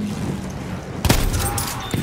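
A pump-action shotgun fires.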